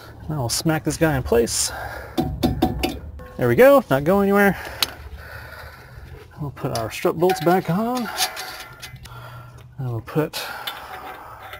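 Metal parts clink and scrape as a wheel brake is handled.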